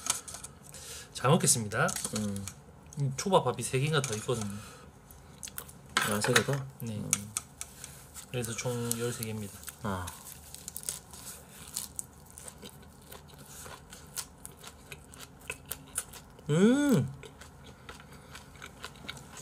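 Cutlery clinks against dishes.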